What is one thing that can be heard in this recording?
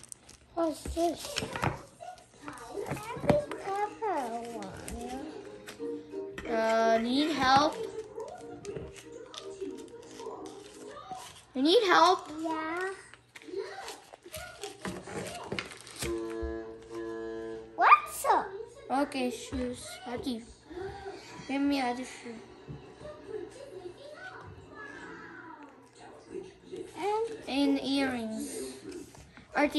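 A young boy talks close by.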